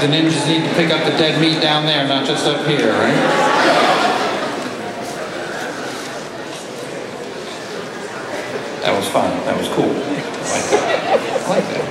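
A man speaks through a microphone over loudspeakers.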